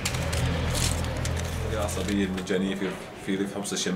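Pill blister packs and cardboard boxes crinkle and rustle in hands.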